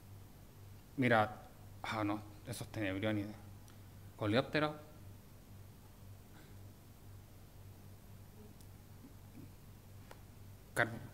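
A man speaks haltingly into a microphone in a large room, with long pauses.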